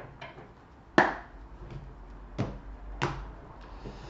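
Cards tap down onto a table.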